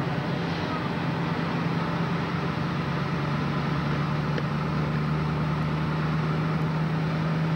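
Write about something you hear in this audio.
A car engine hums steadily while driving.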